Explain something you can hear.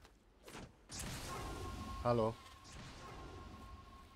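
An electronic device whooshes and hums loudly.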